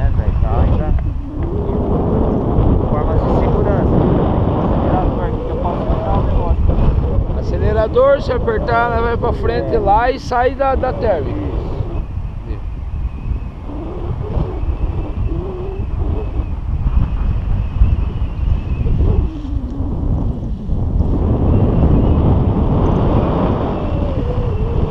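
Wind buffets the microphone during a paraglider flight.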